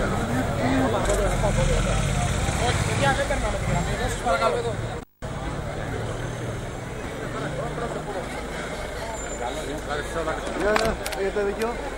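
A van engine rumbles as the van drives slowly past close by.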